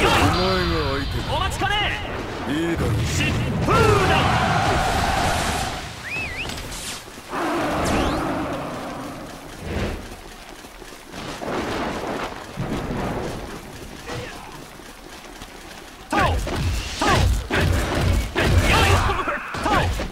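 Blades clash and strike repeatedly in a noisy fight.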